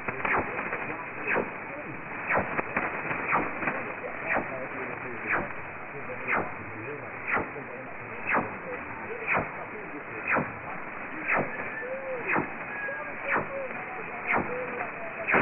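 Shortwave radio static hisses steadily.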